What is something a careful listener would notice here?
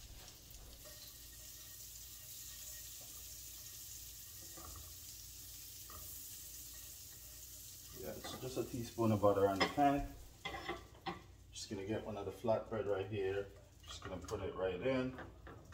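A spatula scrapes lightly against a frying pan.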